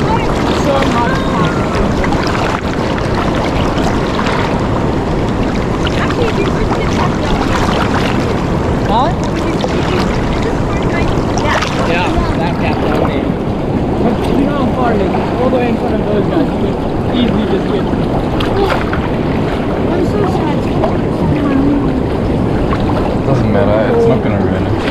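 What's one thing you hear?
Water sloshes and laps close by throughout.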